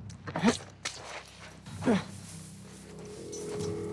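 Tall grass rustles as someone pushes through it.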